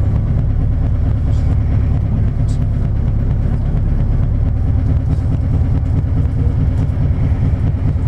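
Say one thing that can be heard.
A vehicle engine rumbles low and steady up close.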